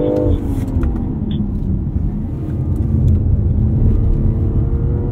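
A car engine hums steadily, rising in pitch as the car speeds up.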